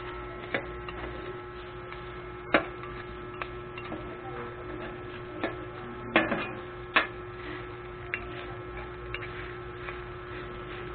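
Metal spatulas clang and scrape against a hot griddle.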